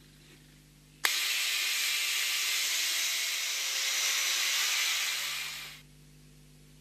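An angle grinder cuts through steel.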